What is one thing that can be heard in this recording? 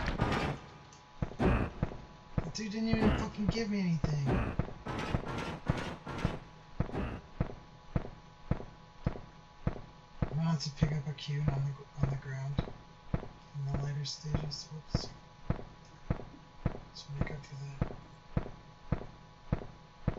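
Footsteps tread steadily along an echoing stone passage.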